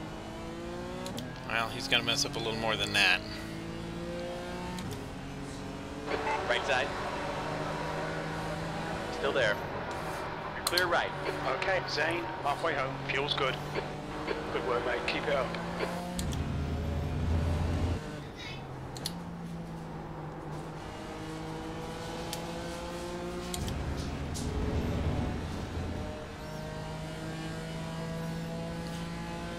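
A race car engine whines steadily, rising and falling in pitch as gears shift.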